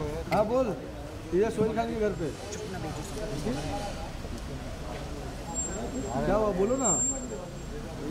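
Several men call out loudly nearby.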